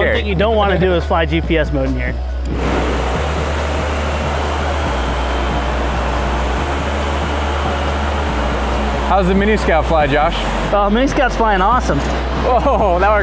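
Drone propellers whir and buzz overhead.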